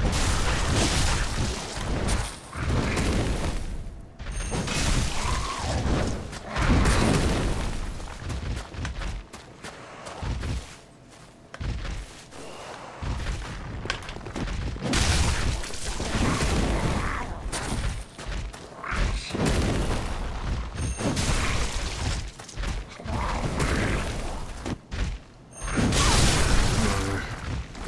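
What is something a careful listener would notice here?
Monsters growl and roar.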